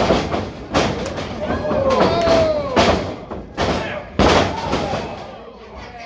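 Bodies slam onto a wrestling mat with loud thuds.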